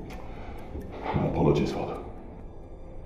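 A man speaks with agitation nearby.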